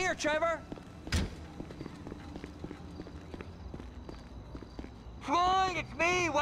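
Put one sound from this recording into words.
Footsteps tap on a hard floor and stairs.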